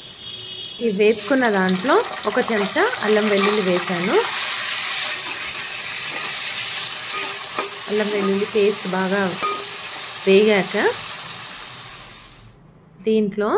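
Hot oil sizzles and crackles steadily in a pan.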